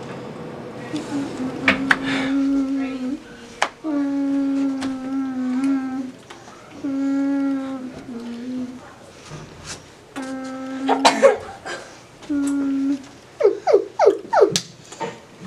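A woman sings loudly and expressively close by, in long held notes.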